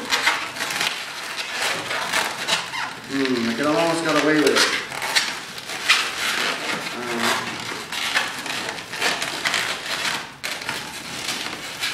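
Rubber balloons squeak and rub as they are twisted together.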